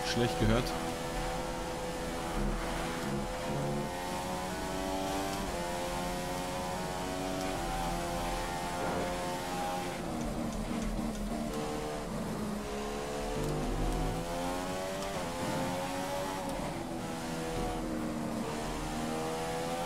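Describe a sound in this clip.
A racing car engine roars loudly, rising in pitch through the gears and dropping as it slows for corners.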